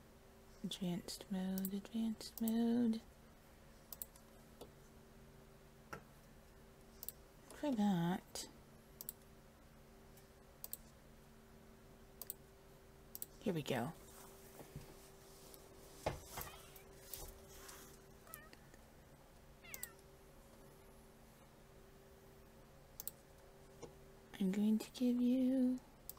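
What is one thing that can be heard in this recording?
A cat meows several times.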